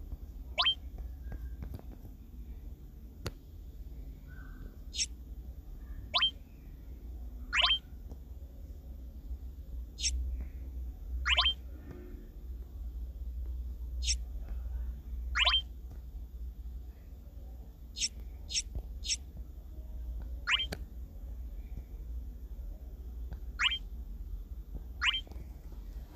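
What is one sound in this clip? Short rising electronic chimes sound as menu options are tapped.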